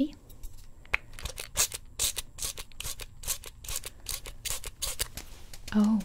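A spray bottle spritzes rapidly.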